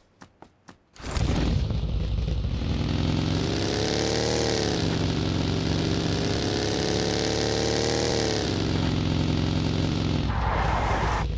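A small buggy engine roars and revs as it drives off-road.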